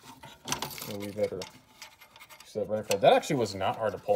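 A metal latch clicks.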